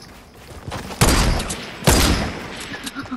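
Gunshots crack sharply a few times.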